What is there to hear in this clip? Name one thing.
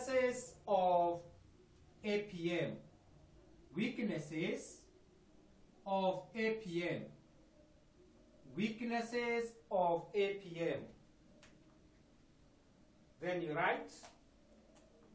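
A man speaks clearly and calmly in short bursts, close to a microphone.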